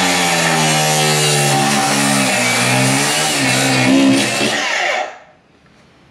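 An angle grinder screeches loudly, cutting metal.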